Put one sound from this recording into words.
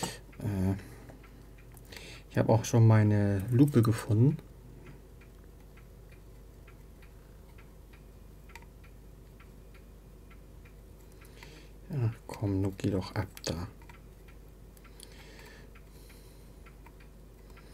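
A small screwdriver clicks and scrapes against a plastic device.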